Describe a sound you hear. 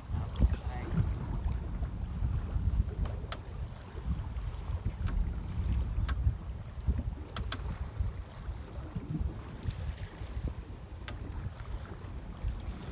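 Waves slap against the side of a boat.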